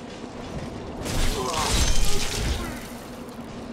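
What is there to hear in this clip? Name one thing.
A sword swings and slashes with a loud whoosh.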